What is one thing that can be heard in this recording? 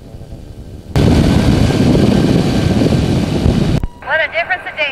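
Wind roars loudly past.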